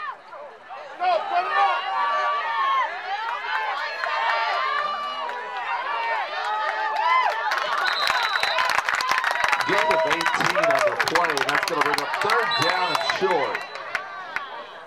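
A crowd of spectators cheers and shouts close by outdoors.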